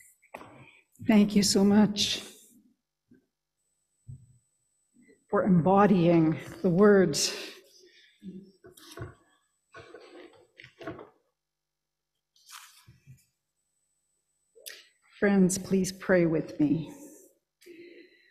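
A woman speaks calmly into a microphone in a large, echoing room, pausing between phrases.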